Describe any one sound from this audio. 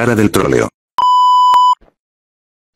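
A steady high test tone beeps briefly.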